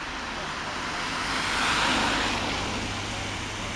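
A car passes close by with a hiss of tyres on a wet road.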